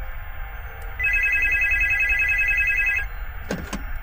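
A telephone keypad beeps as buttons are pressed.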